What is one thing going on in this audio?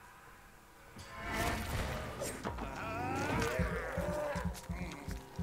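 Heavy blows thud and scuffle in a close fight.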